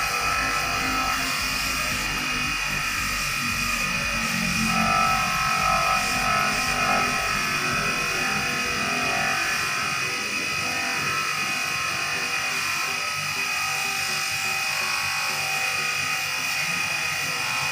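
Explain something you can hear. Metal rubs against a spinning buffing wheel.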